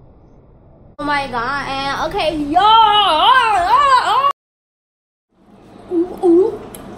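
A young woman sings loudly and close by, her voice sliding up and down.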